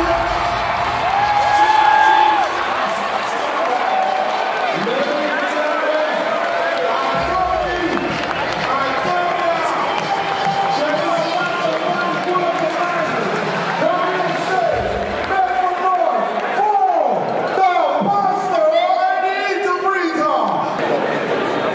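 A large crowd sings and cheers loudly in a big echoing hall.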